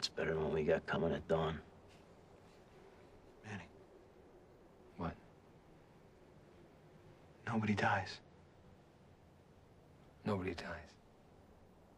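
Young men speak in low, hushed voices close by, with long pauses in between.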